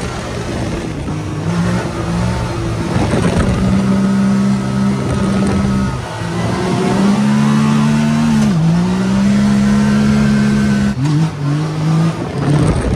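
A small engine hums and revs up and down as a vehicle drives.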